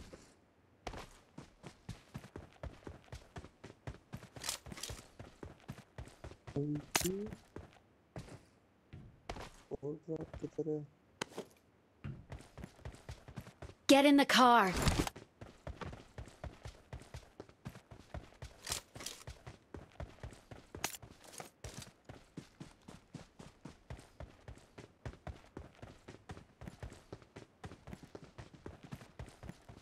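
Footsteps crunch quickly and steadily over the ground.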